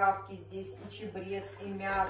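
Water pours from a kettle into a cup.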